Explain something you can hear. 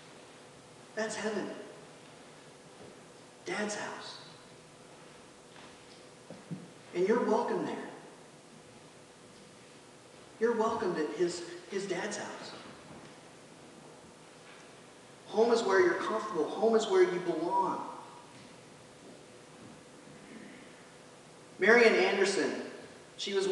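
A man reads aloud in short phrases with pauses, heard through a microphone in an echoing hall.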